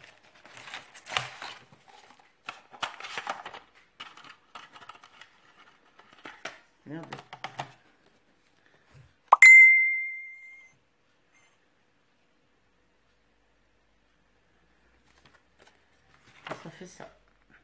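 Paper and card rustle and scrape as hands handle them.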